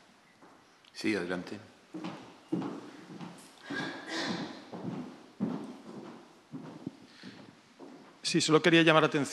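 A man speaks quietly through a microphone in a large room.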